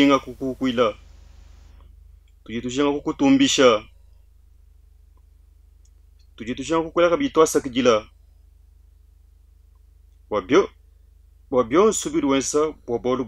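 A man speaks calmly and slowly into a close microphone, reading out with pauses.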